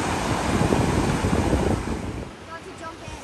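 Waves wash over pebbles on a shore.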